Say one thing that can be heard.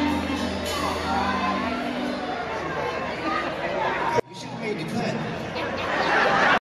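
A crowd cheers and shouts close by.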